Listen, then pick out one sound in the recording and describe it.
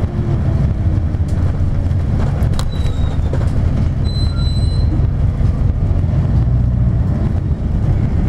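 Traffic passes by at an intersection.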